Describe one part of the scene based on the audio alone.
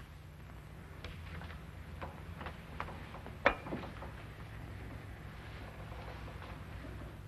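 A glass stopper clinks against a bottle.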